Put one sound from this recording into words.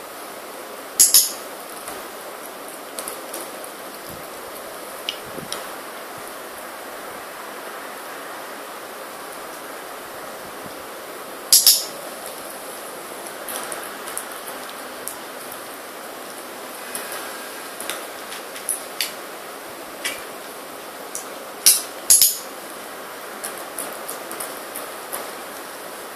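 Fabric straps rustle softly as they are handled.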